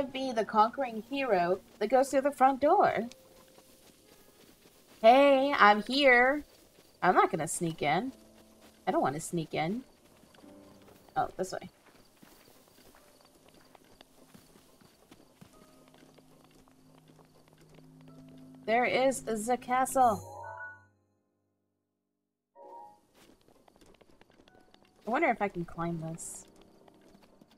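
A young woman talks with animation into a headset microphone.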